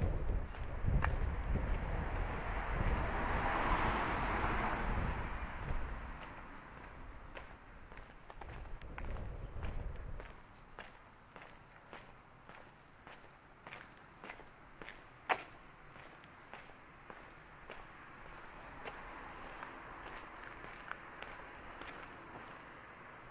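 Footsteps tap steadily on a paved street.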